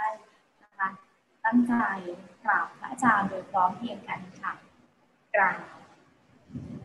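A young woman speaks warmly over an online call.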